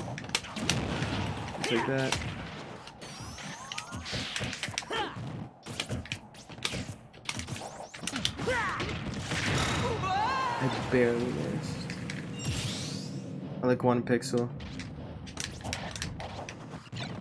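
Game sound effects of punches, blasts and whooshes ring out in quick bursts.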